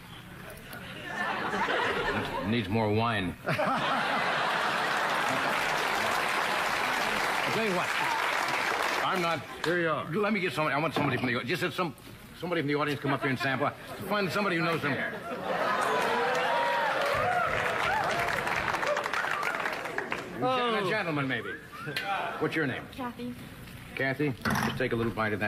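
An elderly man talks with animation into a microphone.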